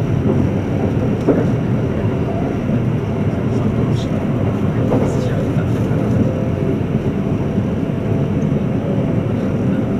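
An electric express train rumbles along the track at speed, heard from inside a carriage.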